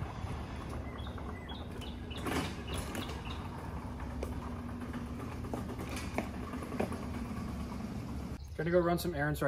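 A garage door rolls open with a steady mechanical hum.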